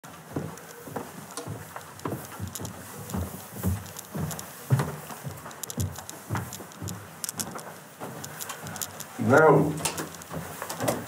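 Footsteps thud on wooden stairs close by.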